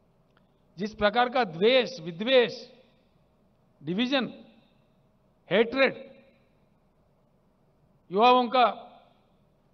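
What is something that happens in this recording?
An elderly man speaks forcefully through a microphone and loudspeaker, in short bursts with pauses.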